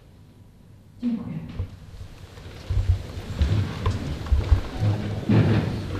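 A crowd sits down with chairs creaking and scraping.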